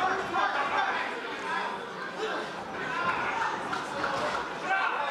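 A crowd of spectators shouts and cheers in an indoor hall.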